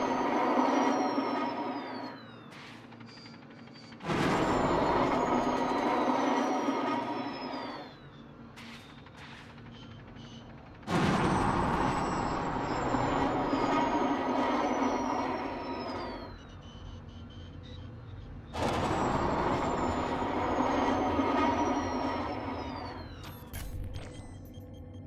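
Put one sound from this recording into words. A spacecraft engine roars in long bursts, each ending with a falling whine.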